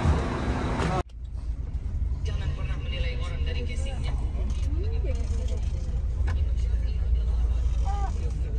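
A bus engine rumbles low and steady from inside the moving bus.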